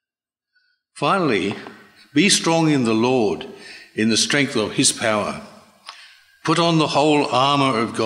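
An elderly man reads aloud calmly into a microphone.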